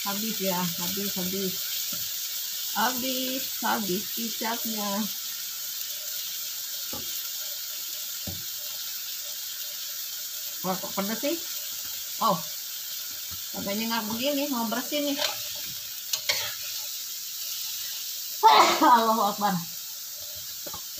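Food simmers and sizzles gently in a pan.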